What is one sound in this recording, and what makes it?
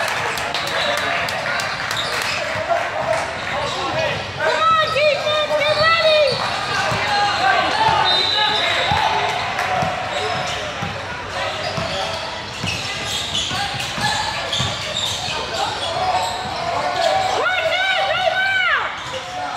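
A crowd of spectators chatters in the background.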